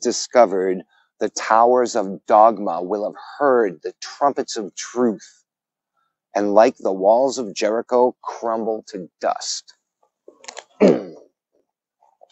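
A man reads aloud calmly, close by.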